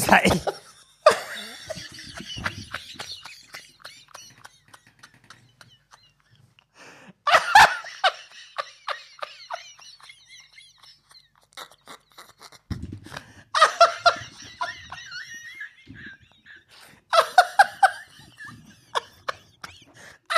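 A second man laughs loudly into a microphone.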